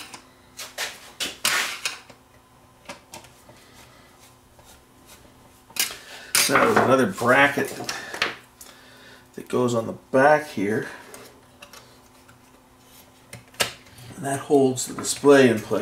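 Tools and metal parts clink and tap against a metal chassis.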